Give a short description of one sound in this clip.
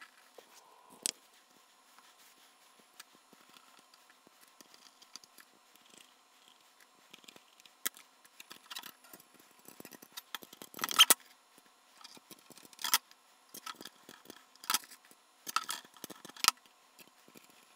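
Small metal parts click and tap against a metal panel.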